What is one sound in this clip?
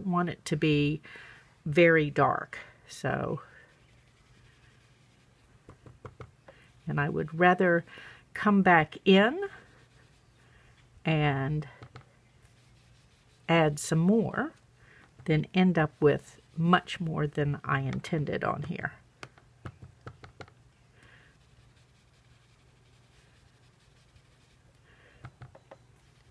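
A sponge dauber taps softly on paper.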